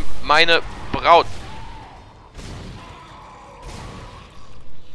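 A weapon fires sharp shots.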